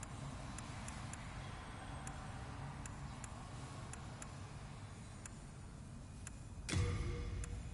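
Soft clicks tick one after another as a menu scrolls.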